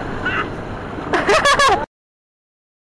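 A young woman laughs and shrieks close by.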